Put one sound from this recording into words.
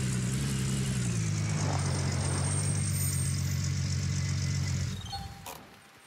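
A truck engine rumbles steadily and then cuts out.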